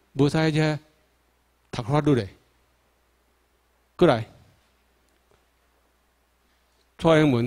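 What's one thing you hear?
A man speaks through a microphone in short, emphatic phrases, with pauses between them.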